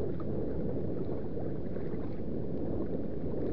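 A paddle splashes and dips into the water.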